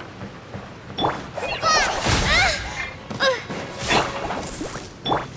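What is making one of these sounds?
Magic attacks crackle and whoosh in a fight.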